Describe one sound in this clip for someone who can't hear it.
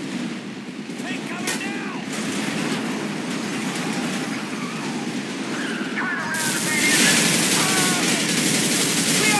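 A heavy diesel engine rumbles steadily.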